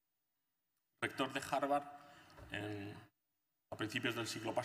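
A man speaks through a microphone, lecturing calmly.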